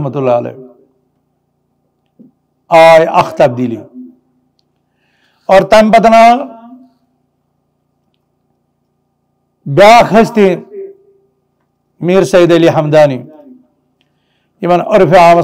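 An elderly man speaks into a microphone in short, emphatic phrases with pauses between them.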